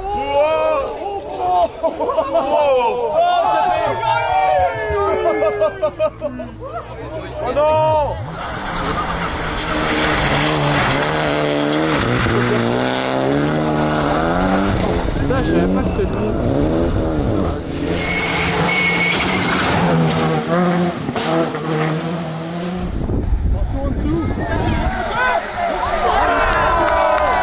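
A rally car engine revs hard, rising and falling in pitch as it races past.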